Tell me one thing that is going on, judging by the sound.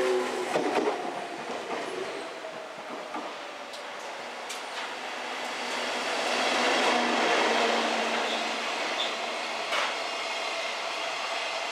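A freight train rolls slowly by on a nearby track.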